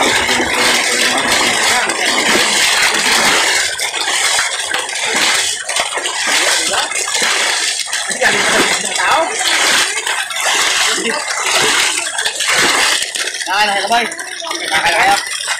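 Water splashes as men thrash about.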